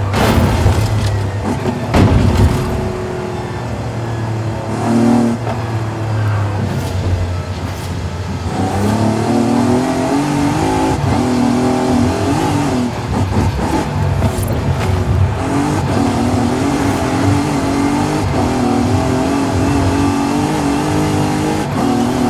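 Tyres crunch and skid on loose gravel.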